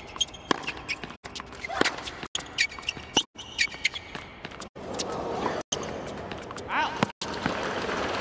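Rackets strike a tennis ball back and forth in a rally.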